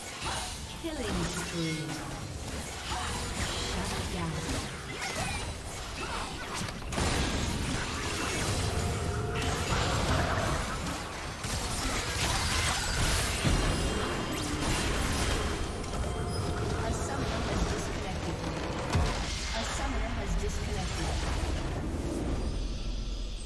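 Game spell effects crackle and whoosh during a fight.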